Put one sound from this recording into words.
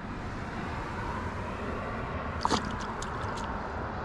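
A fish drops into the water with a splash.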